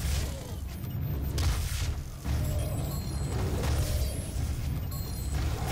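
A futuristic gun fires in short, rapid bursts.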